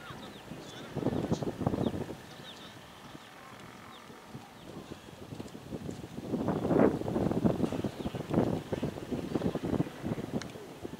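Men call out across an open field.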